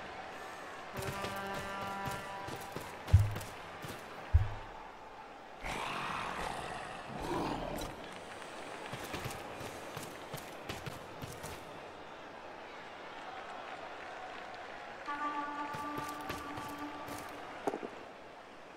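Game sound effects chime and thud as players move.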